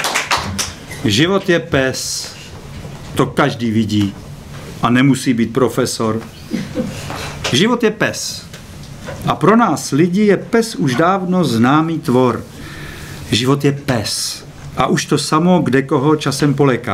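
A middle-aged man speaks with animation into a microphone, close by.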